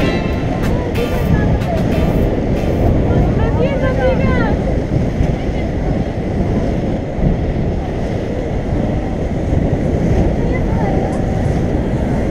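Inline skate wheels roll steadily on asphalt.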